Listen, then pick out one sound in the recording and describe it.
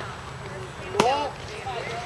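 A metal bat cracks sharply against a baseball.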